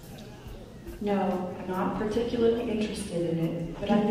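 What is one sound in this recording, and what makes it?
A robot speaks in a smooth female voice through a loudspeaker.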